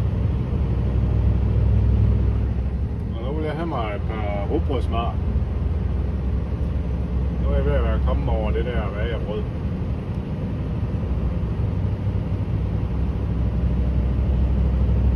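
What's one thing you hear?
A vehicle's engine and tyres rumble steadily on a smooth road.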